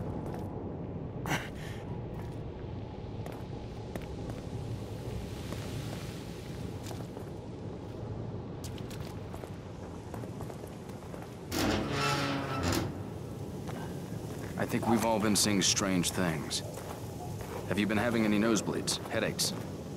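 Footsteps scuff on hard ground.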